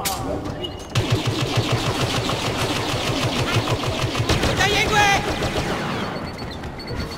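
A blaster fires rapid shots.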